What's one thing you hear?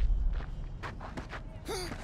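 Fists punch and land with dull thuds.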